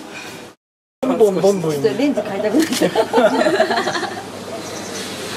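A man laughs with animation.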